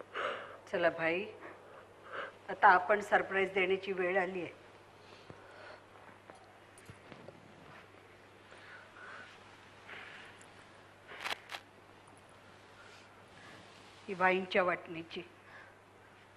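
A woman speaks in a high, wavering voice, close by.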